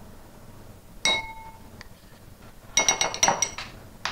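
A metal spoon clinks against a ceramic bowl.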